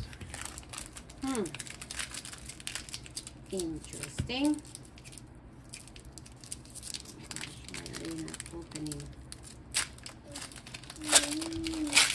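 A foil card wrapper crinkles and rustles in fingers.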